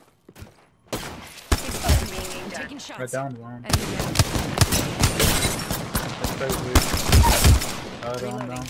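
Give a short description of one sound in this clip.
Rapid gunfire bursts out in loud, fast volleys.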